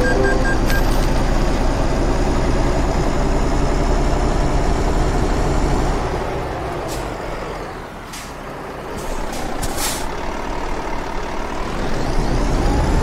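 A diesel semi-truck engine drones as it drives along a highway.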